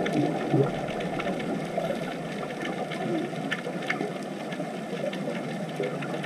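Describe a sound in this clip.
Air bubbles from divers rush and gurgle underwater.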